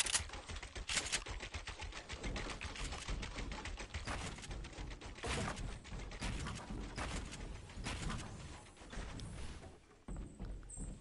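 Wooden building pieces snap into place with quick knocks.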